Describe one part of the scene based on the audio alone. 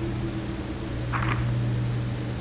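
A paper page turns with a soft rustle.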